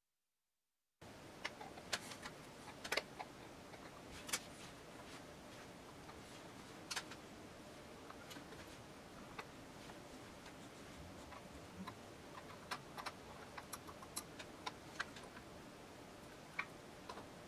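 Tweezers tick and click against small metal clock parts.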